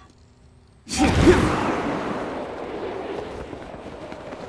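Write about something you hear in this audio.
A strong gust of wind bursts upward with a loud whoosh.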